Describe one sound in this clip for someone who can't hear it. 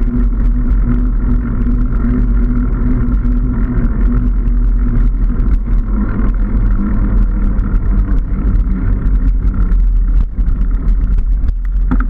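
Bicycle tyres hum and rattle over the road.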